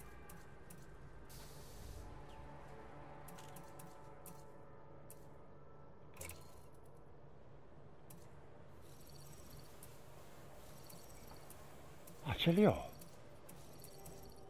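Soft menu clicks sound now and then.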